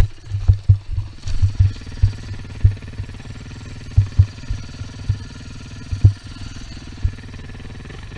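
A dirt bike's suspension thumps and knocks over rough ground.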